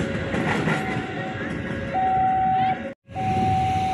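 A train rumbles along the tracks and passes.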